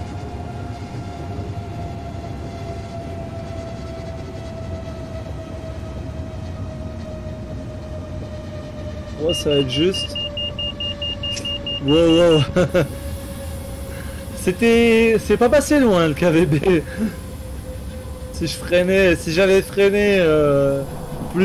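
An electric train motor hums with a steady whine that slowly drops in pitch.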